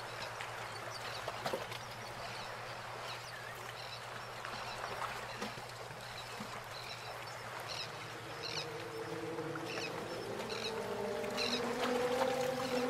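Waves crash and roar steadily onto a beach.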